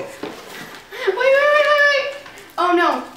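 A young man shrieks and cries out excitedly, close by.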